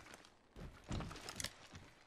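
Footsteps clang on metal stairs.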